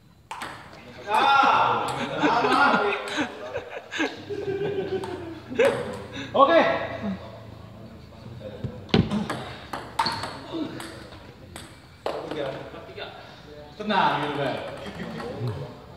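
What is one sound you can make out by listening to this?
Several men talk and laugh nearby with animation.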